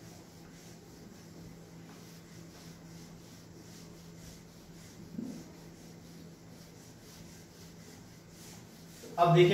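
A cloth duster rubs back and forth across a whiteboard.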